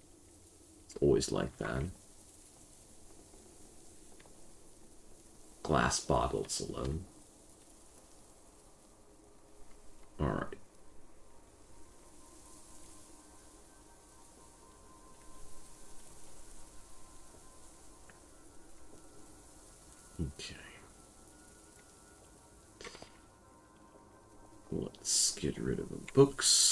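A young man talks calmly into a close microphone in short bursts.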